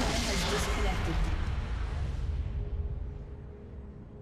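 A loud blast of game effects booms and rumbles, then fades away.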